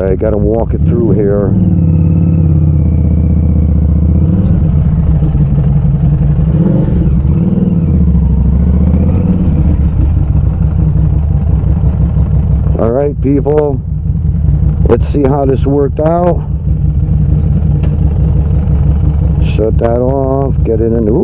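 A motorcycle engine rumbles steadily close by.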